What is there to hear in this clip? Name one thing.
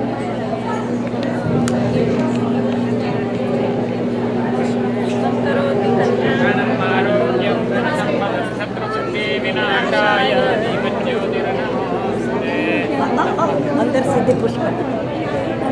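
A crowd of women and men chatter nearby in a busy, echoing room.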